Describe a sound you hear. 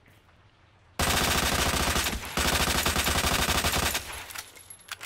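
A submachine gun fires in long rapid bursts.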